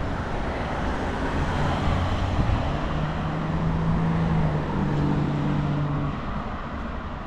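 A car engine hums as a car passes close by.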